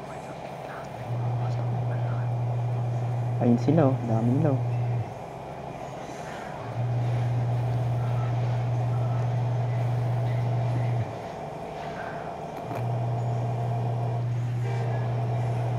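A bus engine hums steadily as it drives along.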